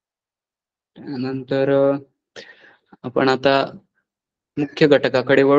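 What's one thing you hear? A man speaks calmly through a microphone, as if explaining.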